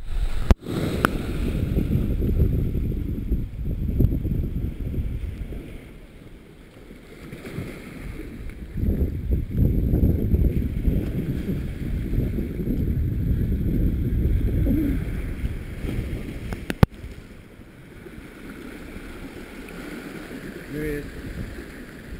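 Waves wash and splash against rocks close by.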